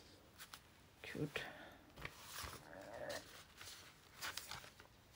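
Paper rustles and crinkles as sheets are handled.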